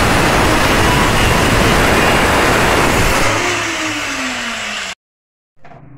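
A power drill whirs loudly, then winds down.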